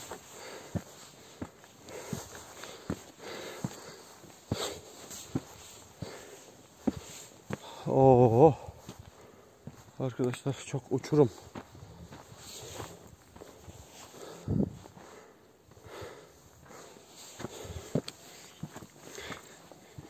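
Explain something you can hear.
Footsteps crunch on rock and gravel.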